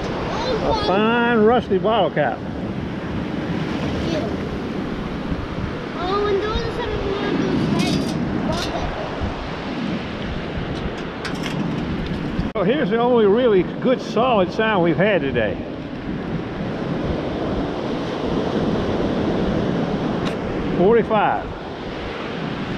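Shallow surf washes and fizzes around the feet.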